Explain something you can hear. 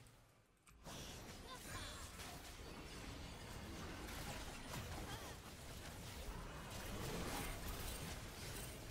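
Video game spells whoosh, crackle and burst in quick succession.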